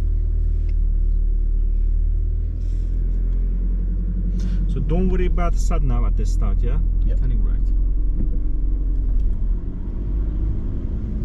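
A car engine hums steadily with road rumble inside the car.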